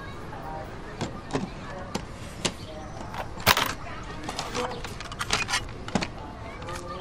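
Plastic buttons on a cassette player click sharply.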